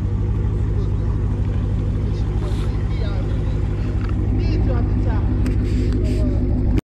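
A car engine idles with a loud, deep, throbbing rumble close by.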